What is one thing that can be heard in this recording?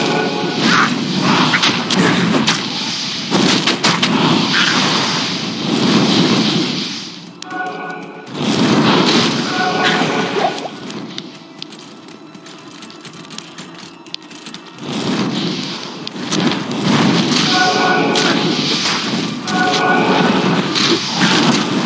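Fire spells roar and crackle in bursts.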